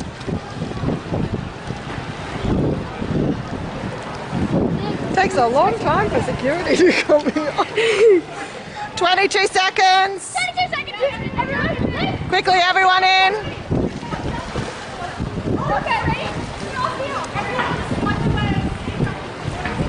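Water splashes as feet wade through a shallow pool.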